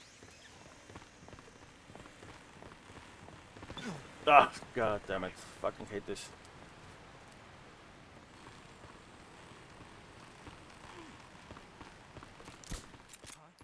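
Footsteps thud on a wooden rope bridge.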